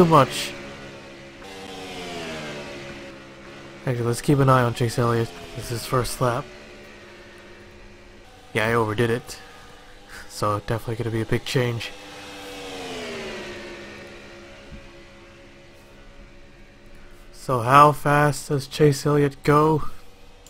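A race car engine roars at high speed, its pitch swelling and dipping as it passes.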